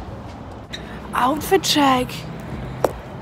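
A young woman laughs close to the microphone.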